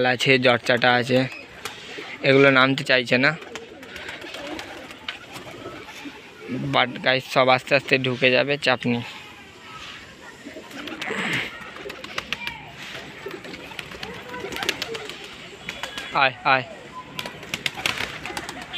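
Pigeons coo close by.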